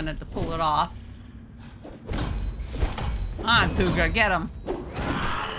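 A large creature shrieks and growls.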